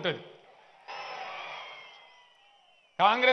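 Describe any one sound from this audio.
A large crowd cheers.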